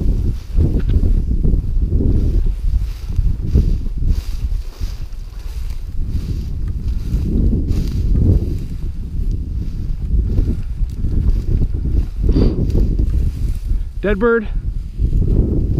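Wind buffets the microphone outdoors with a low rumble.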